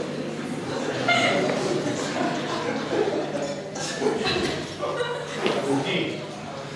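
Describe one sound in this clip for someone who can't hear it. Men talk in the background of a large hall.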